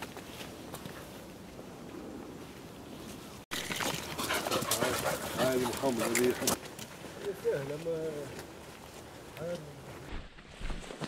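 Footsteps crunch on a dirt track.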